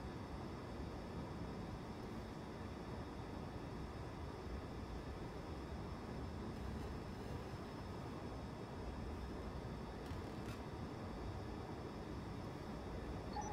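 A spaceship engine hums with a steady low rumble.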